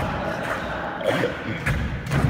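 A young man talks close by in an echoing tunnel.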